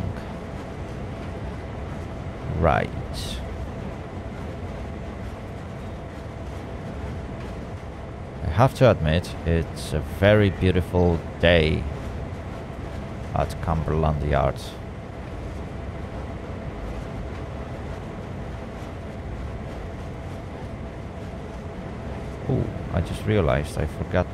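A locomotive engine rumbles steadily.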